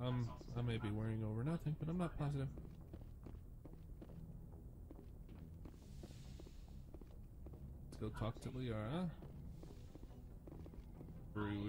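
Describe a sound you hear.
Footsteps run quickly across a hard metal floor.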